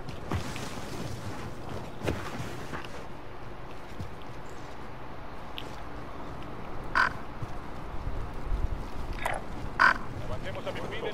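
Footsteps rustle through grass.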